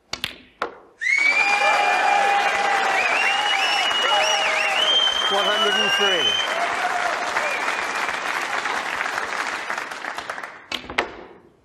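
An audience applauds loudly, with a few whistles.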